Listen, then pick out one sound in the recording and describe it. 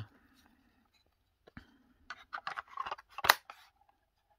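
A plastic battery cover snaps shut.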